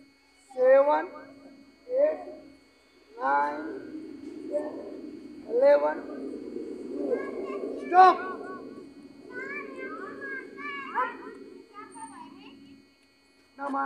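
A group of children chant counts loudly in unison.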